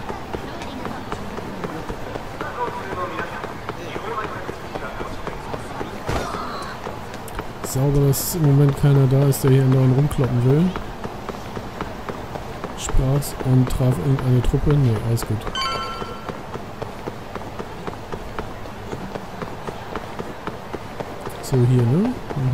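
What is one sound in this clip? A busy street crowd murmurs in the background.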